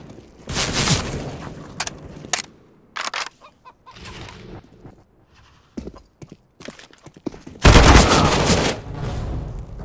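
Rifle shots crack loudly in short bursts.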